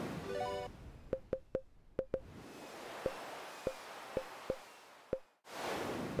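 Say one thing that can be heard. Short electronic blips sound as a menu cursor moves.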